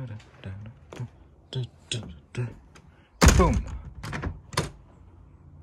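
A door handle clicks.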